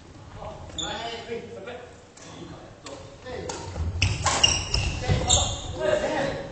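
Badminton rackets strike shuttlecocks with sharp pops.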